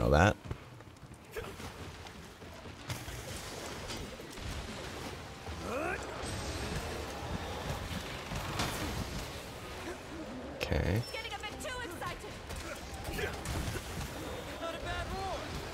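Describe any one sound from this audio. Water splashes and churns during a fight.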